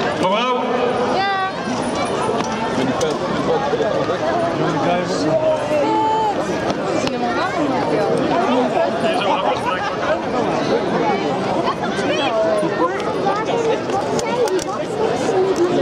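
A large crowd of children and adults chatters and shouts outdoors.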